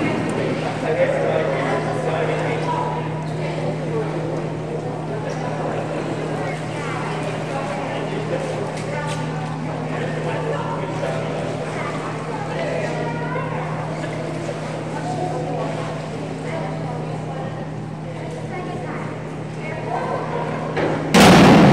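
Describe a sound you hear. Many people chatter, their voices echoing through a large indoor hall.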